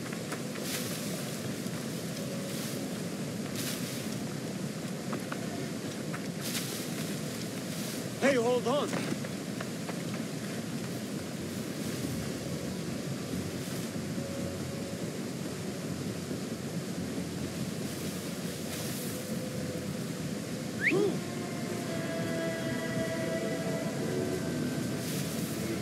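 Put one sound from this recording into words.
Leaves and brush rustle as someone pushes through bushes.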